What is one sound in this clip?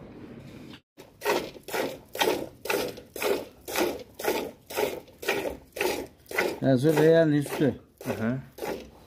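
Milk squirts into a metal bucket in quick rhythmic spurts.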